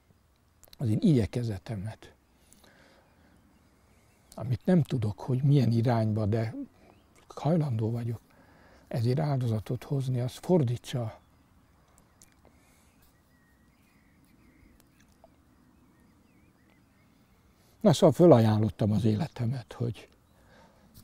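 An elderly man speaks calmly and slowly, close by, with long pauses.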